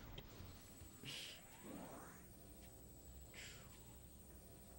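Energy blasts fire in quick hissing bursts.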